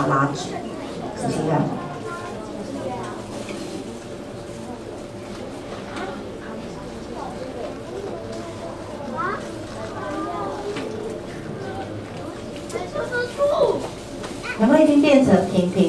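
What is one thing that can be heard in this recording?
A paper banknote rustles softly as hands fold and flatten it.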